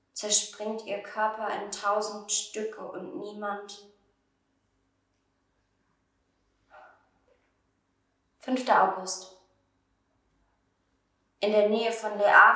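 A young woman reads aloud close by, with pauses.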